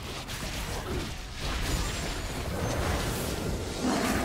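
Magic blasts whoosh and crackle as fighters clash in a game.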